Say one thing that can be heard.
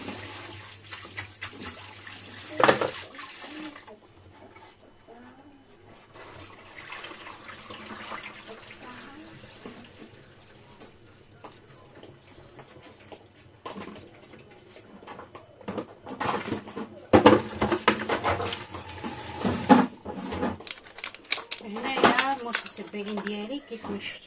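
Hands clatter dishes and utensils.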